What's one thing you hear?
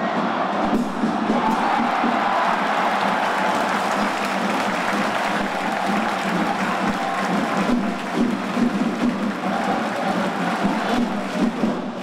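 A large crowd cheers and roars loudly throughout.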